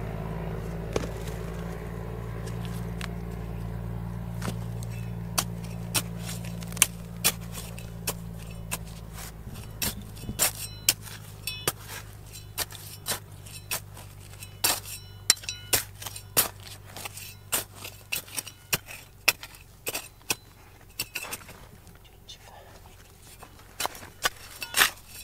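A small metal trowel scrapes and digs into dry, stony soil.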